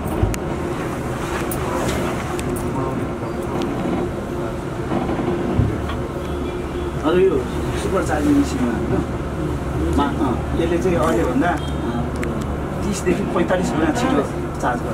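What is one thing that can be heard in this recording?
A bus engine hums steadily while the bus rolls along.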